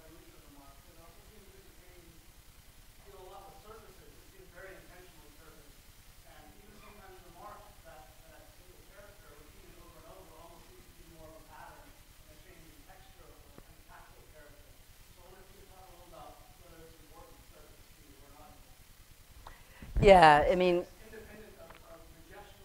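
A man speaks calmly through a microphone in a quiet hall.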